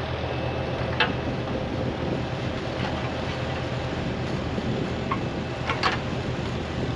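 A metal digger bucket scrapes and knocks against stony soil.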